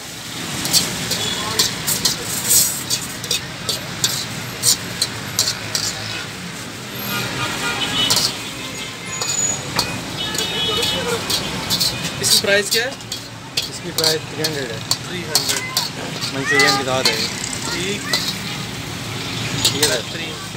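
A metal ladle clangs and scrapes against a wok.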